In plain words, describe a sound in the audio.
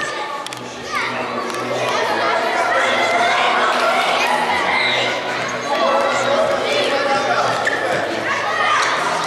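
Spectators cheer and shout.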